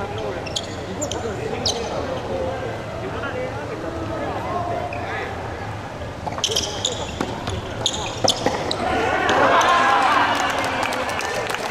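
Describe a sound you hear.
Young men call out and talk during play.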